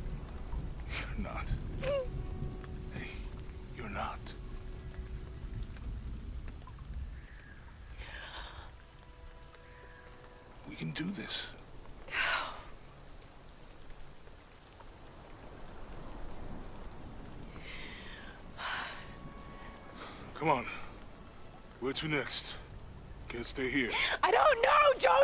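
A young woman speaks softly and tearfully.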